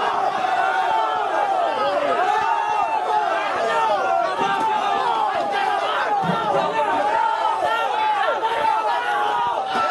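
A crowd of men shouts and chants loudly at close range.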